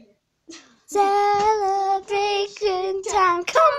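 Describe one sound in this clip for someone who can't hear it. A young girl sings loudly close by.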